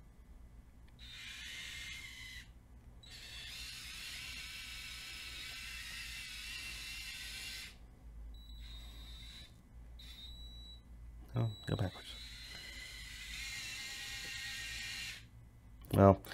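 Small electric motors whir in short bursts as a toy rover drives about.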